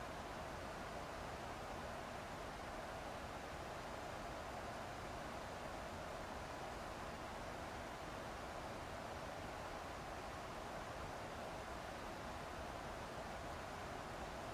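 Jet engines and rushing air make a steady, even roar.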